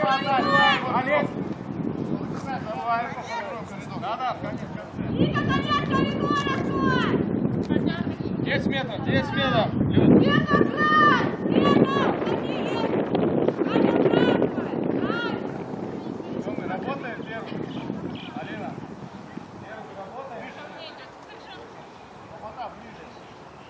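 Young women shout and call to each other outdoors.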